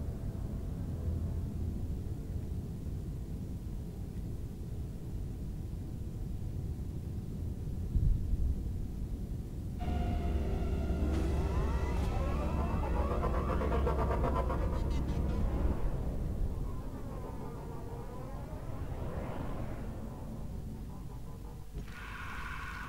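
A large spaceship's engines rumble deeply and steadily.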